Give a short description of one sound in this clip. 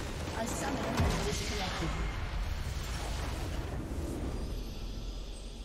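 A large structure explodes with a deep rumbling blast.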